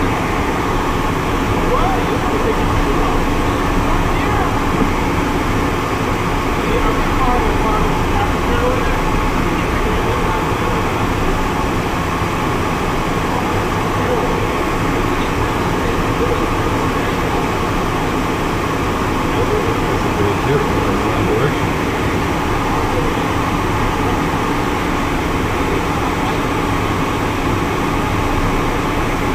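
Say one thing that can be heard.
A small plane's engine drones steadily from inside the cockpit.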